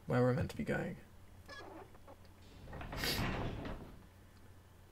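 A heavy door creaks slowly open.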